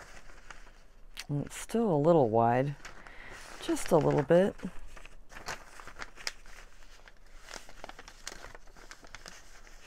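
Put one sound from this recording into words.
Paper rustles and crinkles close by.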